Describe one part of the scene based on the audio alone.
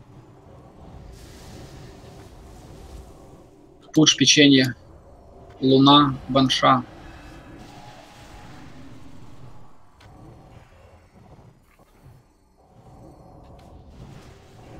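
Magic spell effects whoosh and crackle in a battle.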